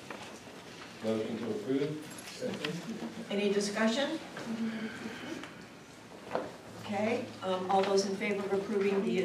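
A man speaks calmly, heard from across a room.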